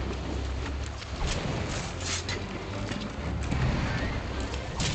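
Water splashes as something wades through it.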